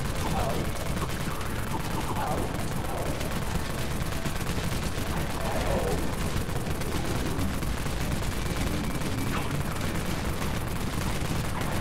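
Rapid gunfire rattles continuously.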